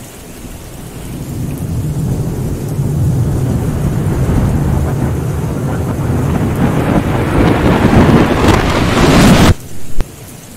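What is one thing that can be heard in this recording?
Thunder rumbles low and steadily grows louder into a loud crash.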